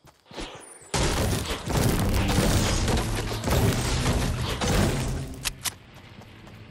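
A pickaxe chops loudly into a tree trunk.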